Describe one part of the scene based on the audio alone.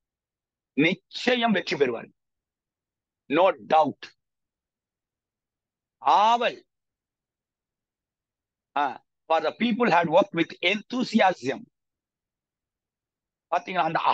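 A middle-aged man speaks calmly in bursts over an online call.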